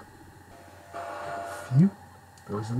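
Electronic game beeps and chimes play.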